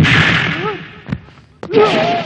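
A body crashes to the ground.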